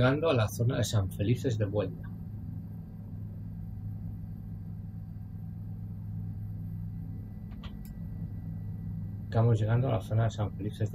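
A helicopter engine drones steadily with a low rotor hum.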